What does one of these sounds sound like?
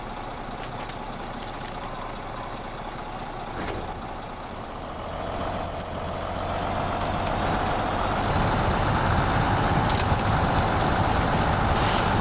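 Tyres churn through snow and mud.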